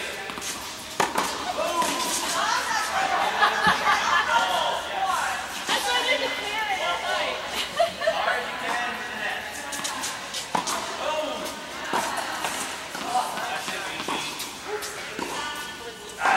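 A tennis racket strikes a ball in a large echoing hall.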